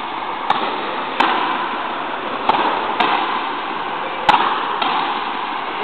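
A ball smacks off rackets and a wall, echoing loudly in a large hall.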